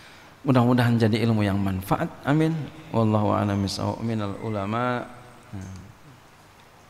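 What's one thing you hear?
A man speaks steadily into a microphone, in a melodic, chanting voice.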